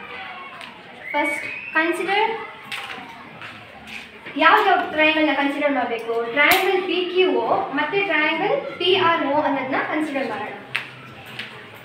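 A girl speaks clearly and steadily nearby, explaining.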